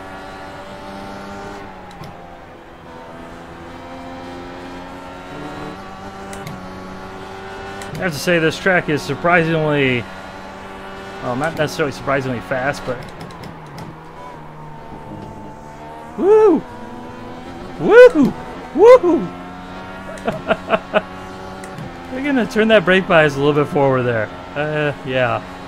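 A race car engine drones and whines as it speeds up and slows down.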